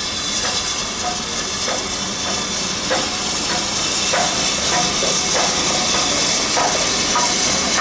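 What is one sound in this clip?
Train wheels click over rail joints.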